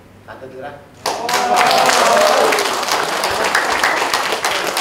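An audience cheers and applauds loudly.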